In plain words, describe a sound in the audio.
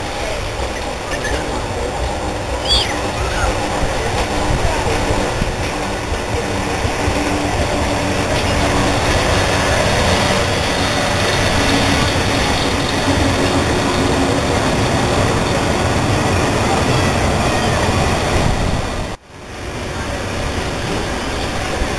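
A tram rumbles and squeals slowly along the rails.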